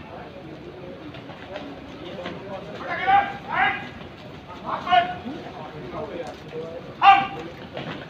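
Many boots march in step on pavement.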